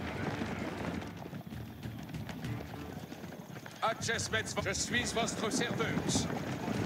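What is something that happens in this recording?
A troop of armoured soldiers marches with clanking steps.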